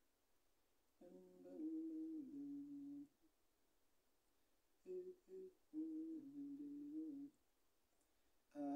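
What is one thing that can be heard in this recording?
A young man sings slow, drawn-out notes close by.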